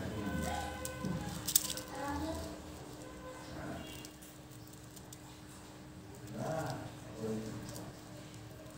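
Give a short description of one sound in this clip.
Small candies rattle inside a plastic bottle as it is turned in the hands.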